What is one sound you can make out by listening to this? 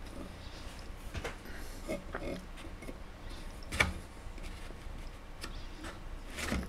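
A metal ornament knocks and scrapes lightly on a desk as a hand moves it.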